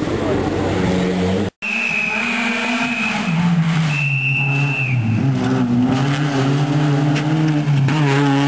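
A rally car engine roars and revs at high speed nearby.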